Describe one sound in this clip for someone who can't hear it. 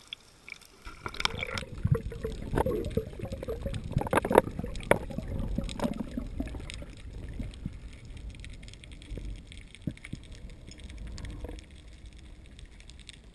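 Water swirls and rumbles, heard from underwater.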